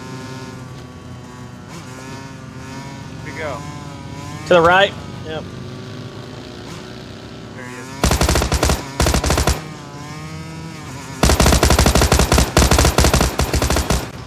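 A motorbike engine drones and revs as the bike rides over rough ground.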